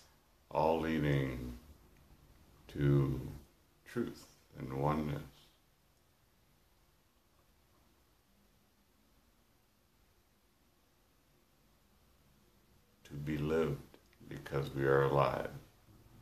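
A man speaks calmly and warmly close to the microphone, pausing between phrases.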